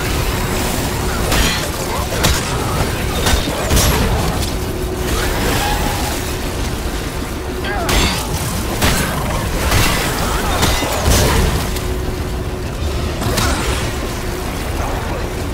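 A monster screeches and growls.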